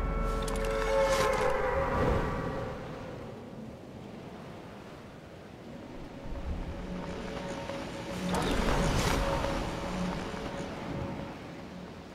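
Wind rushes loudly past during a fast fall through the air.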